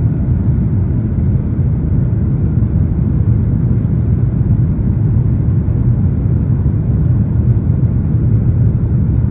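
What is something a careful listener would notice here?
Jet engines roar steadily with a deep, constant rumble from inside an airliner cabin.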